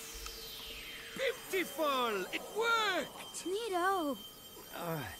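A young boy exclaims with delight.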